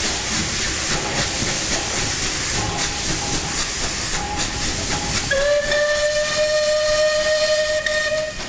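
Heavy wheels clank and rumble over rail joints.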